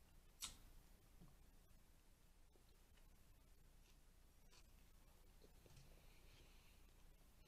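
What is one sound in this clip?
A woman chews food close to a microphone with soft crunching and smacking sounds.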